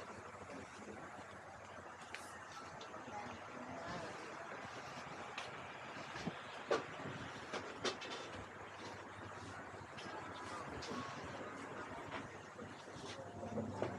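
Men and women chatter in the background.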